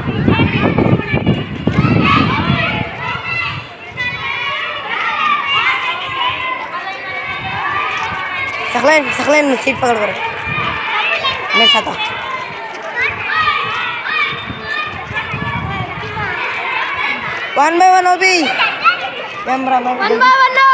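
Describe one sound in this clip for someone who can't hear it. Children chatter and call out nearby, outdoors.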